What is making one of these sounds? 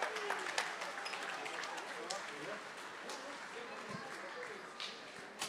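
A band plays live music in a large echoing hall.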